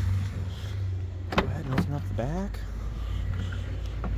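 A vehicle's rear door clicks and swings open.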